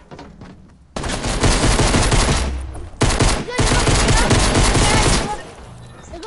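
Rapid gunfire crackles loudly.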